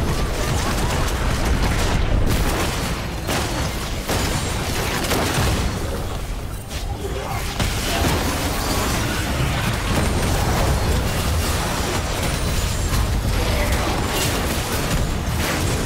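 Game spell blasts and hits crackle and boom in a fast, busy fight.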